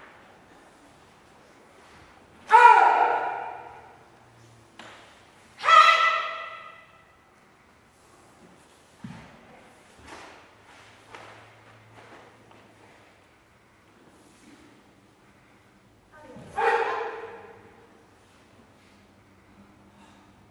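Bare feet stamp and slide on a wooden floor.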